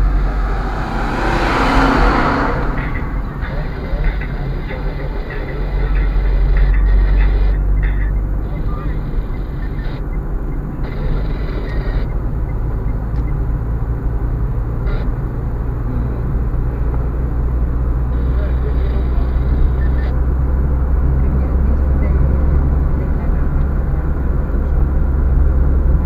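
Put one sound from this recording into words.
Tyres rumble and thump over a rough, patched road.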